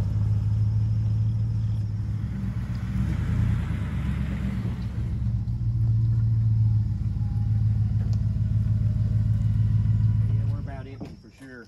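A truck engine rumbles as the truck drives slowly over grass.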